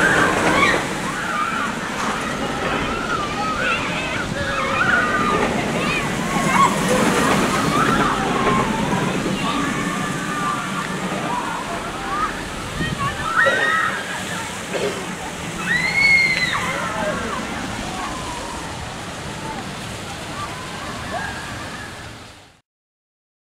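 Riders scream and shriek on a roller coaster.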